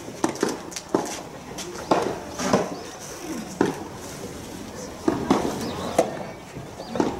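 Tennis balls are struck with rackets back and forth outdoors.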